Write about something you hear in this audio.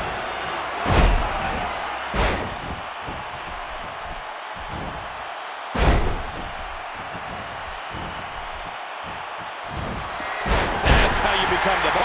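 Heavy thuds of bodies slamming onto a wrestling mat ring out.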